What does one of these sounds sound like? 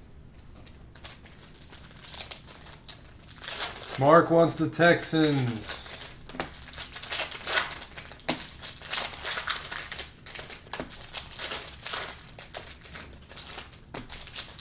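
Foil card packs crinkle and tear as they are ripped open.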